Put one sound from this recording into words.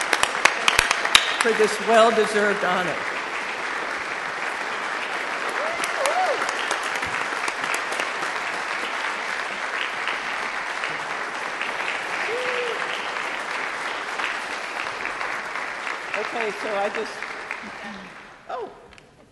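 An audience applauds steadily.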